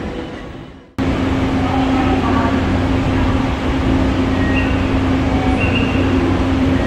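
A parked train's engine hums steadily.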